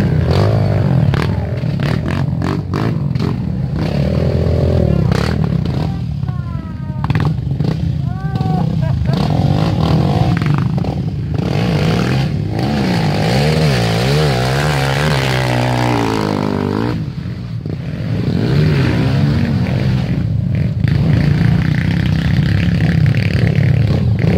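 Dirt bike engines rev loudly and rise and fall in pitch.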